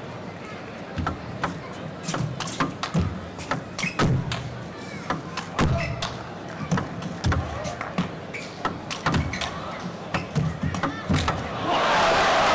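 A table tennis ball clicks rapidly back and forth off paddles and the table.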